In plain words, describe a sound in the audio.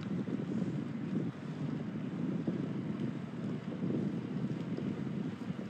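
Wind buffets a phone microphone.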